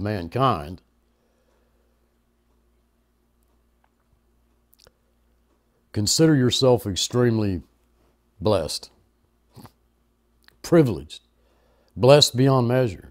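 An elderly man speaks calmly and in pauses, close to a microphone.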